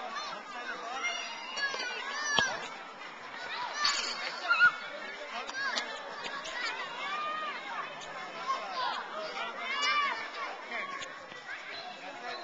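A child kicks a ball with soft thuds.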